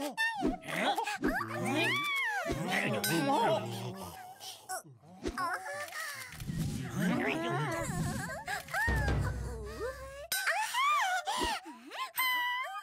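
A young woman sings with animation in a high voice.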